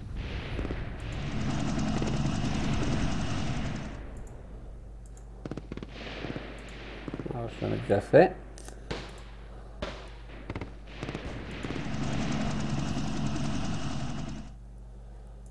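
Battle noise of gunfire and explosions rumbles in bursts.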